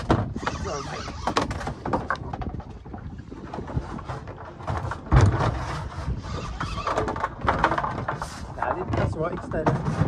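A fishing reel clicks as it is cranked.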